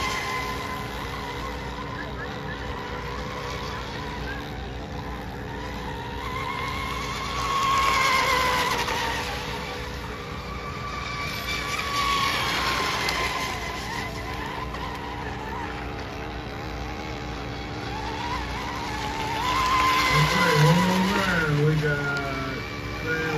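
A small racing boat's motor whines loudly as the boat speeds past over the water.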